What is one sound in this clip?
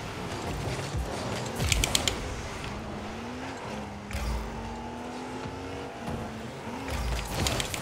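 A car engine hums and revs steadily.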